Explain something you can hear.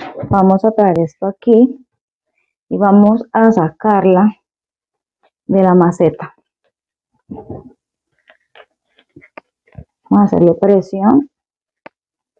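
A woman speaks calmly and close by, in short phrases with pauses.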